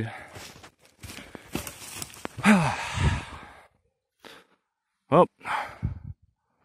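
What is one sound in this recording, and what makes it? Dry leaves rustle and crunch underfoot.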